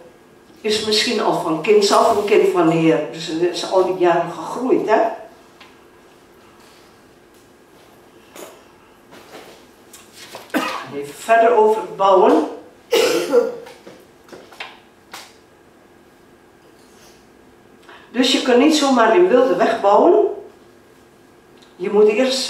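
An elderly woman speaks calmly into a microphone, heard through a loudspeaker in an echoing room, with pauses between phrases.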